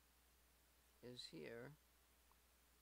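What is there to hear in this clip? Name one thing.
A man speaks briefly and calmly into a microphone, close by.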